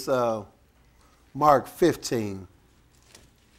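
A man preaches loudly and with feeling into a microphone in a reverberant room.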